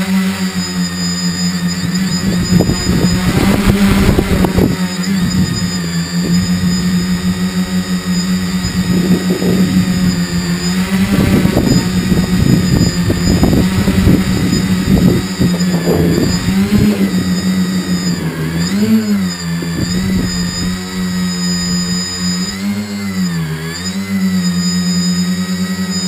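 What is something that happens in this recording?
A small drone's propellers whine steadily, dipping and rising in pitch as it turns.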